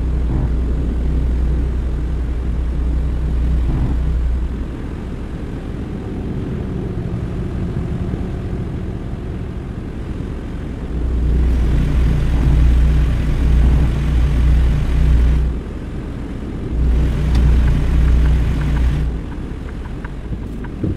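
A truck engine rumbles steadily as it drives along a highway.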